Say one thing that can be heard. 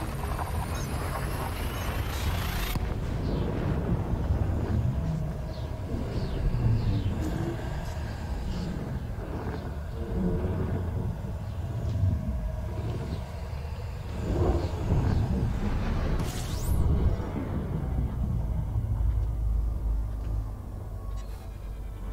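A spaceship engine rumbles low and steadily.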